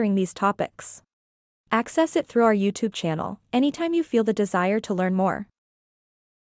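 A young woman speaks calmly and clearly into a microphone, close by.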